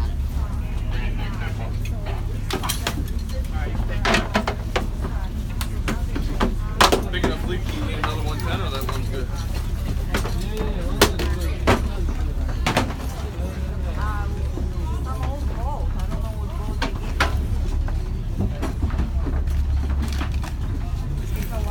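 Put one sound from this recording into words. A ship's engine rumbles low and steady throughout.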